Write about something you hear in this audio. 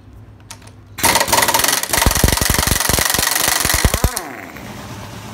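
A power tool whirs and rattles loudly against a bolt.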